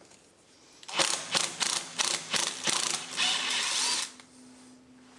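A ratchet clicks rapidly as it turns a bolt.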